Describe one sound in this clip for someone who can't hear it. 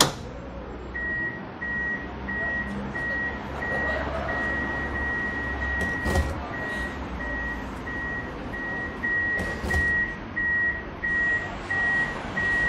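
A tram's signal beeps steadily in short pulses.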